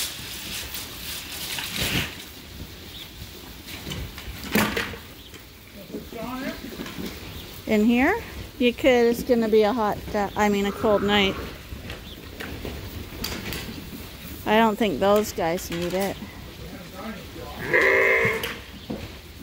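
Lambs' hooves patter and rustle through straw.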